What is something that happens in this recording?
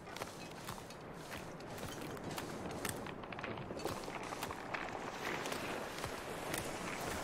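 Wind blows steadily through a snowstorm outdoors.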